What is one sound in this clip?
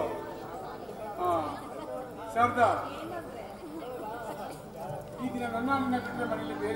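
A woman speaks with animation into a microphone, heard over loudspeakers.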